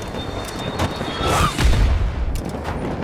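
Tyres crunch and skid over gravel.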